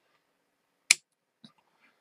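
Wire cutters snip a lead with a sharp click.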